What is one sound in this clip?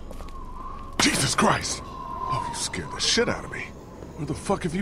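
A young woman exclaims in surprise, sounding startled.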